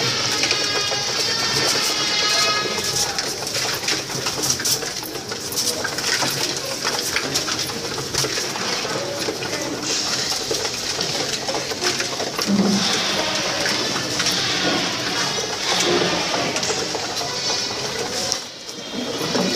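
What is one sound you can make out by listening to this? Pigeons coo in a low, throaty murmur close by.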